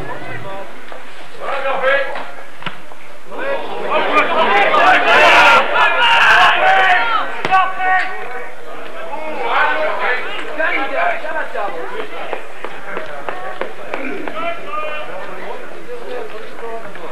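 Rugby players shout across an open field.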